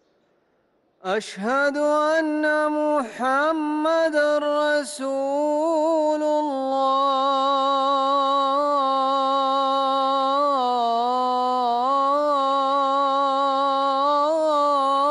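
A man chants a long, drawn-out call through loudspeakers, echoing outdoors.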